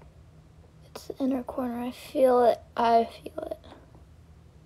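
A young woman speaks softly up close.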